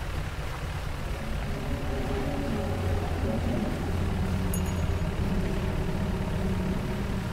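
Water splashes and churns behind a moving boat.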